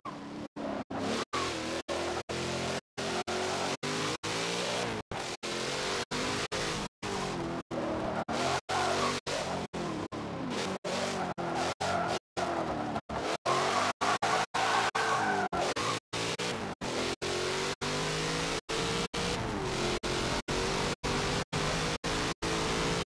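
A sports car engine roars, revving up and dropping as the gears shift.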